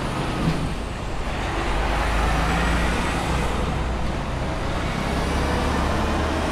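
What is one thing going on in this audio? A truck rolls by along the street.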